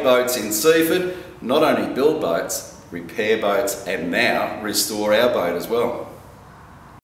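An elderly man talks with animation close to a microphone.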